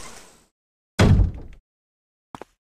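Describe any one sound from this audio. A heavy door thuds shut.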